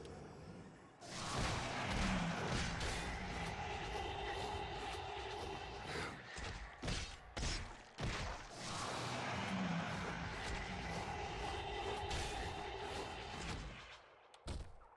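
Magic spells whoosh and hum in a long, steady rush.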